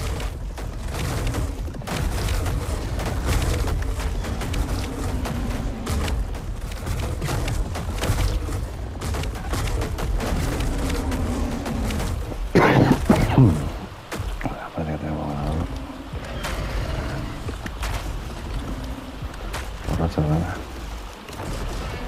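Dinosaurs roar and screech as they fight.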